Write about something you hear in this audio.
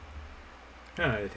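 A man speaks briefly, close to a microphone.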